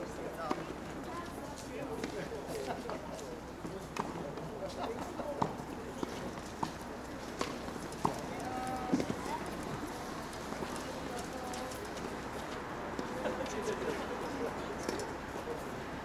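Tennis balls are struck with rackets at a distance, with sharp pops.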